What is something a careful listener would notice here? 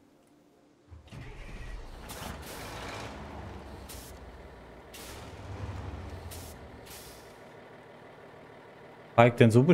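A truck engine rumbles and revs as the truck drives.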